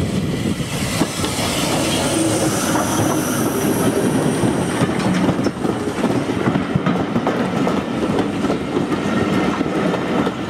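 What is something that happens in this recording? Steel wheels clatter and rumble on the rails as a train passes close by.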